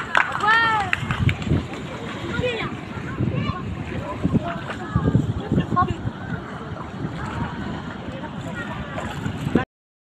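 Water sloshes around legs wading through the shallows.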